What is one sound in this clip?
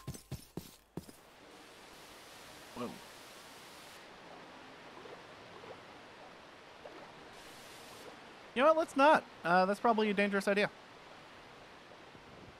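Water swirls and bubbles with a muffled, underwater sound.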